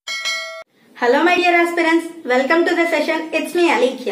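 A young woman speaks calmly and clearly, close to the microphone.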